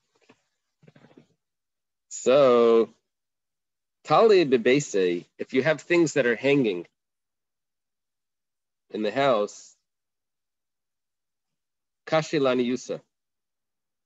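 A man chants in short bursts through an online call microphone, with pauses between phrases.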